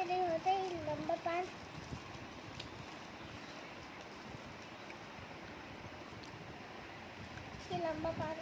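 Paper wrappers crinkle and rustle.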